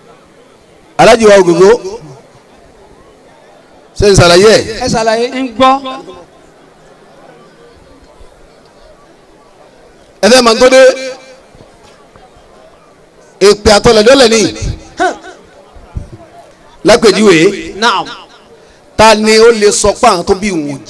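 A man speaks loudly in short bursts through a microphone and loudspeakers outdoors.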